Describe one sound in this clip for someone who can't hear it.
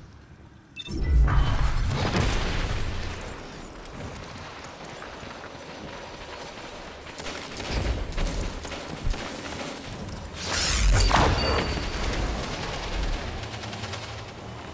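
Game gunfire bursts in short sharp volleys.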